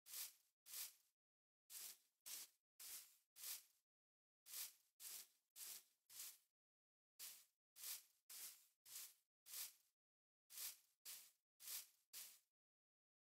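Footsteps crunch on gravel in quick, even bursts.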